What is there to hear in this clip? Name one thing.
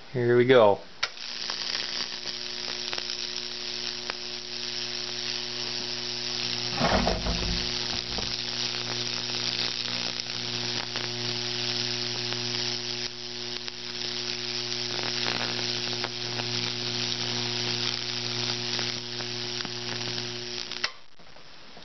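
A high-voltage transformer hums steadily.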